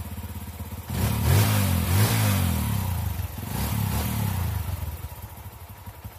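A motorcycle engine revs up loudly and settles again.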